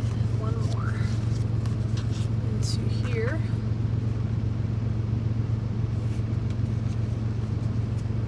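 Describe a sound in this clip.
Stiff paper rustles as it is peeled from fabric.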